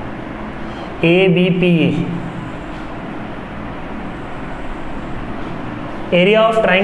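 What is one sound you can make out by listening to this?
A man explains calmly, as if teaching, close by.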